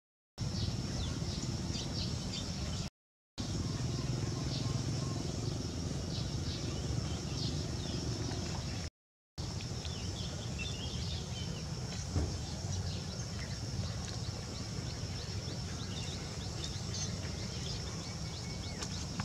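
A monkey's hands scrape and pat on dry dirt.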